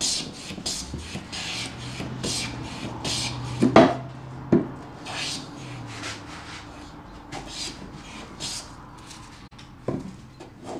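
A hand plane shaves wood in short repeated strokes.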